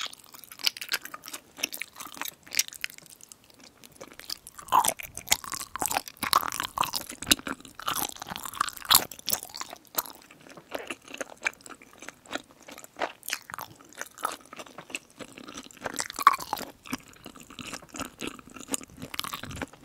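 A young woman chews food wetly and closely into microphones.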